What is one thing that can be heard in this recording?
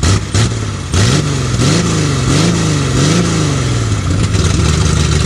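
A car engine revs up and down several times.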